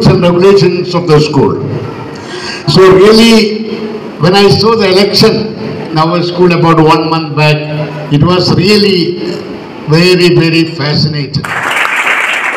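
An elderly man speaks steadily through a microphone and loudspeaker in an echoing hall.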